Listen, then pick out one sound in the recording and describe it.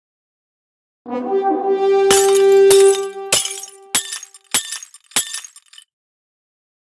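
A bright chime and burst of celebratory tones rings out as confetti falls.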